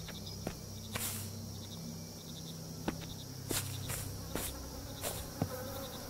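A man hums quietly close to a microphone.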